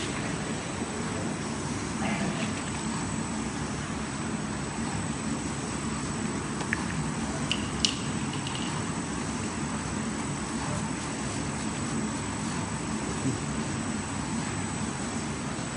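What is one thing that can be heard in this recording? A filling machine hums and rattles steadily.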